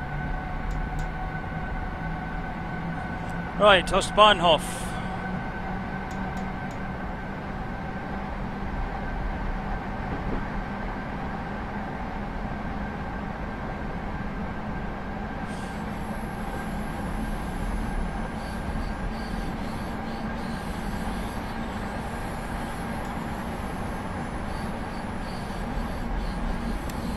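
The motors of an electric multiple unit hum steadily as the train runs through a tunnel.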